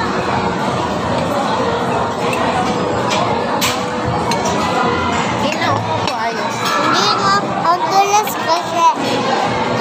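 Forks clink and scrape against plates.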